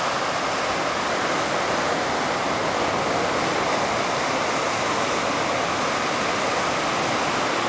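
Small ocean waves break and wash up on a sandy beach.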